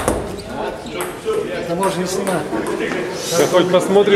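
Men talk casually in an echoing room.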